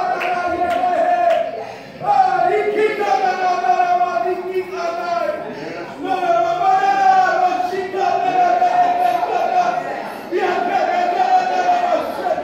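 A group of voices sings along in a large room.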